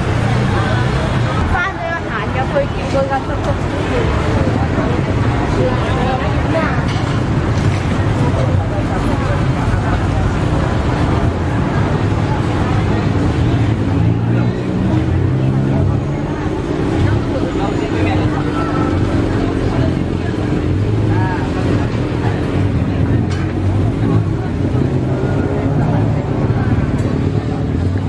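Street traffic rumbles steadily.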